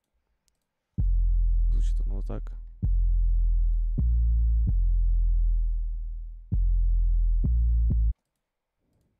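A deep bass synthesizer plays a slow run of long, booming notes.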